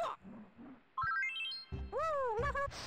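A short rising chime of game notes plays.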